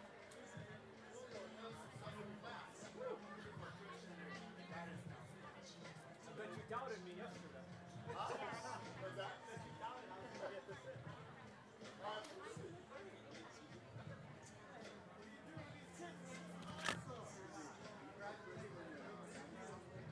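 A large crowd of young men and women chatter and call out all around, outdoors.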